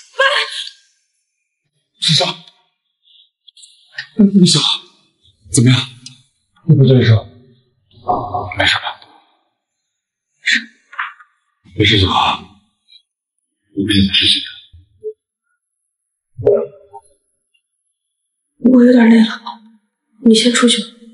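A young woman gasps and speaks softly, close by.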